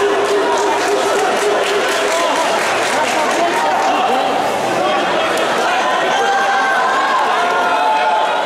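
A large crowd shouts and cheers in an echoing hall.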